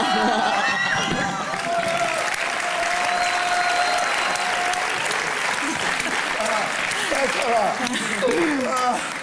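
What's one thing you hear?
A studio audience cheers and laughs loudly.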